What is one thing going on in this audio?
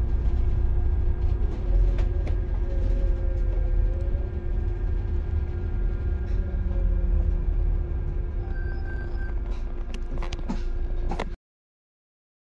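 A vehicle engine rumbles steadily with road noise.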